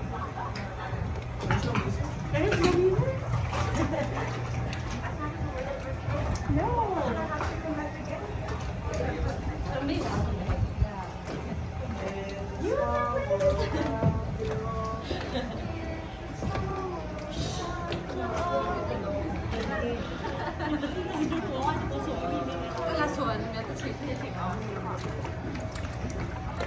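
A ride boat glides along a water channel indoors.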